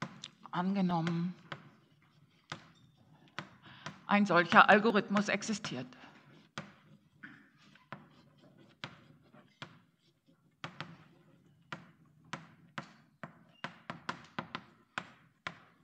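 Chalk taps and scratches sharply on a board.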